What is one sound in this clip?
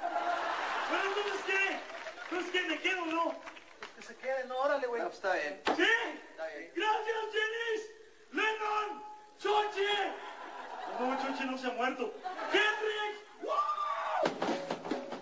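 A man shouts and sings loudly in a rough voice.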